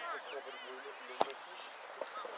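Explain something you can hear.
A soccer ball is kicked hard with a thud outdoors.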